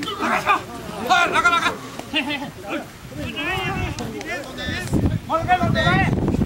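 Men shout and call out loudly outdoors.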